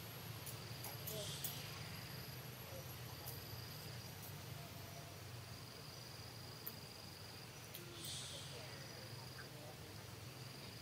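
A baby monkey suckles softly.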